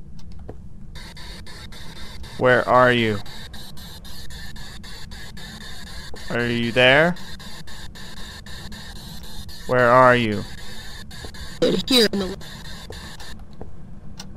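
A small handheld radio crackles and hisses with static.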